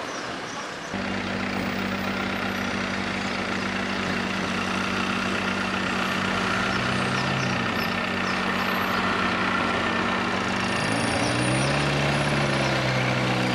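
Cars drive by on a busy street outdoors.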